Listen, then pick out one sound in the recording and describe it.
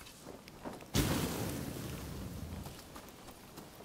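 A fire flares up with a sudden whoosh and crackles.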